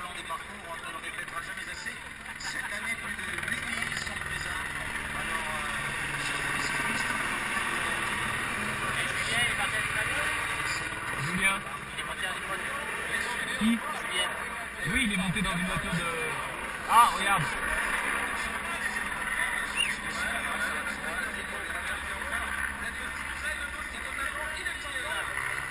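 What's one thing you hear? A crowd of cyclists chatters nearby outdoors.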